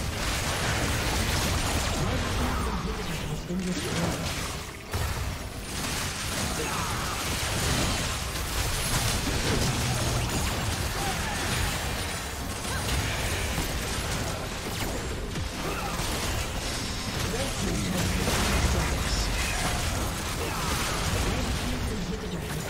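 Fighting game characters clash with crackling magic blasts and bursts.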